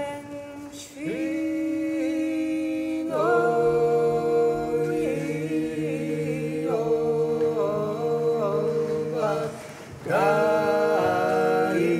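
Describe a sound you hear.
Men sing low harmony beside a woman's voice.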